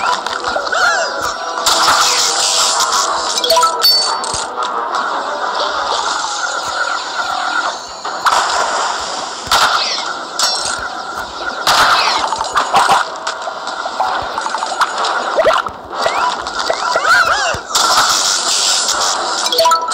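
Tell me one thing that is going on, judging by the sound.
A zapping gun fires in bursts.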